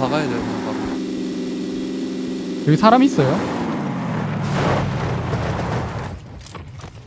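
A car engine hums steadily and then winds down.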